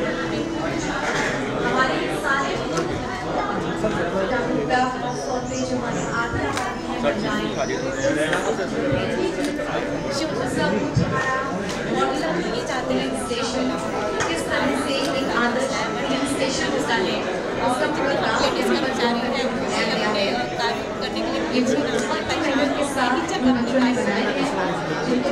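A young woman explains with animation, close by.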